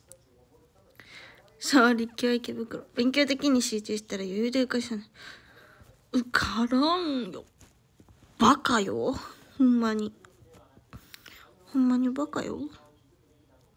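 A young woman talks softly and casually close to a microphone.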